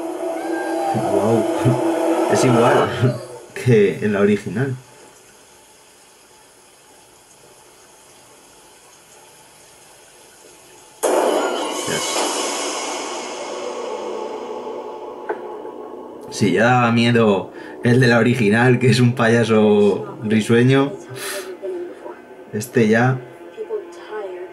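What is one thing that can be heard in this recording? A young man talks close to a microphone.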